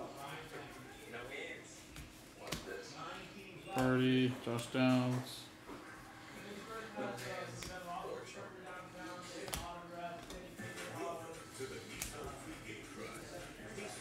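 Trading cards rustle and flick as they are shuffled.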